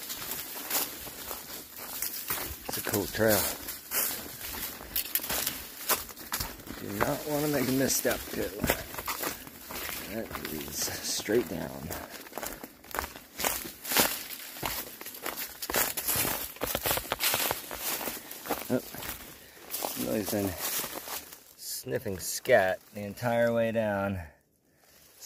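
Footsteps crunch on dry leaves and dirt along a trail.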